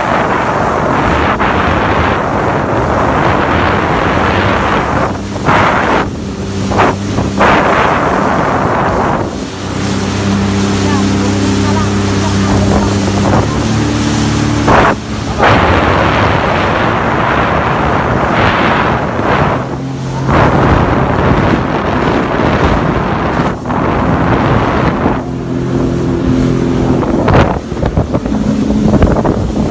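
A jet ski engine roars steadily.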